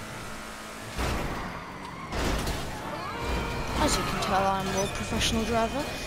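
A car crashes and scrapes with loud thuds.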